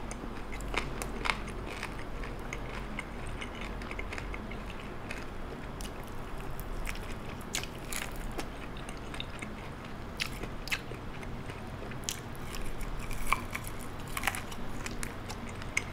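A man chews crispy fried chicken loudly and smacks his lips close to a microphone.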